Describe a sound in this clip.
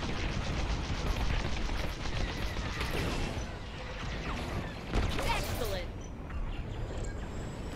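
Laser cannons fire in rapid bursts.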